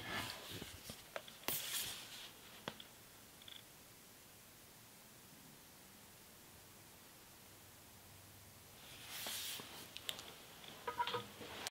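A man handles something close by, with rustles and soft knocks.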